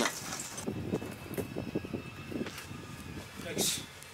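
Loose bricks scrape and knock underfoot.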